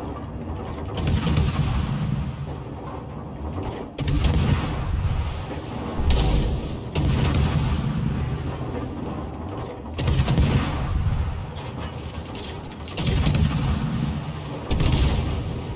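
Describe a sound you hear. Heavy naval guns fire in loud booming salvos.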